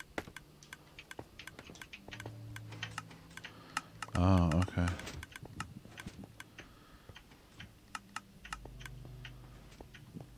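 Blocks click and tap in quick succession as they are placed in a game.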